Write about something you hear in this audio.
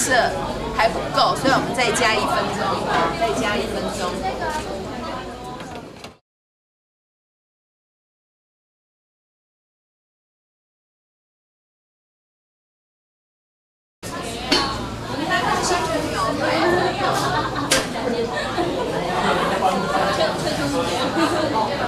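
A baking tray scrapes against an oven rack.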